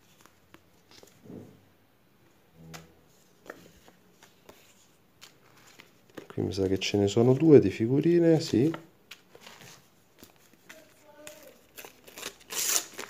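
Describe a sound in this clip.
Stickers and cards rustle and tap as they are handled.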